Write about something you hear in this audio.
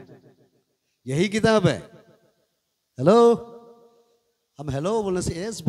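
A man preaches loudly and with passion into a microphone, his voice echoing through a loudspeaker.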